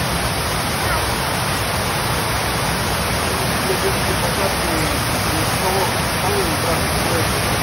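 A fountain splashes steadily nearby, outdoors.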